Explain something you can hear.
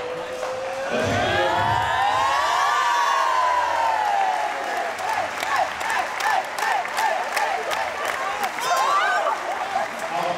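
A group of young women cheer and chant loudly together.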